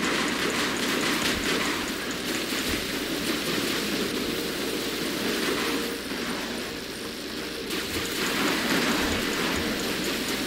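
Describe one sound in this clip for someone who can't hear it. Rockets whoosh and explode.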